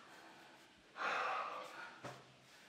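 A young woman gasps loudly.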